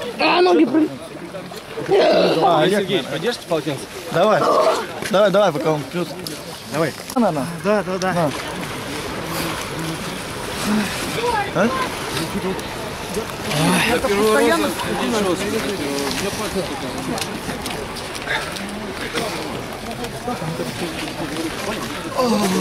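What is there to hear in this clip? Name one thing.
Several young men talk and shout with excitement close by.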